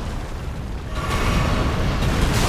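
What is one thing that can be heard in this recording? A huge dragon roars loudly.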